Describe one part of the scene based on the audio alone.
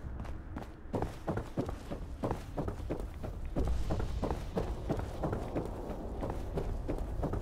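Footsteps thud hollowly on wooden boards.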